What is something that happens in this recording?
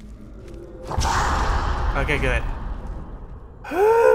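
A magic blast roars and hisses.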